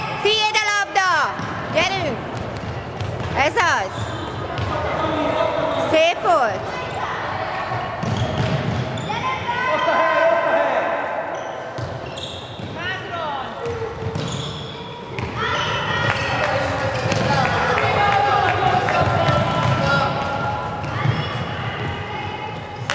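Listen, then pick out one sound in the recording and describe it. Young girls shout and call out to each other across an echoing hall.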